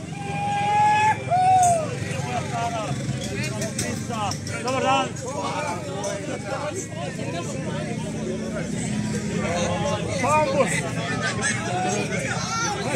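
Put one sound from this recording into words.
Several men and women talk and call out cheerfully close by, outdoors.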